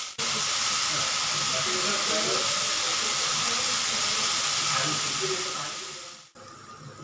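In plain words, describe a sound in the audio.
Water pours in a steady stream into a metal pot.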